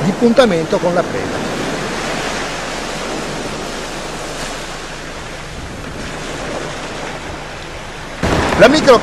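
Small waves wash onto a shore.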